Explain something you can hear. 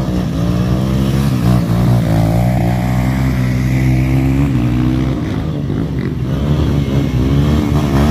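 Mud splashes under a motorbike's wheels.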